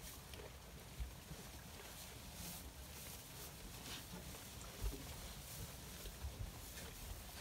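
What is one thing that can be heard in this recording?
Sheep bump against a wire feeder with dull knocks.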